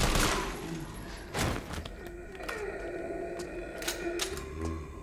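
A shotgun is pumped with a sharp metallic clack.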